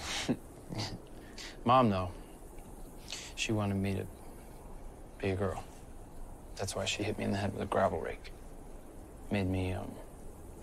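A young man speaks quietly and haltingly, close by.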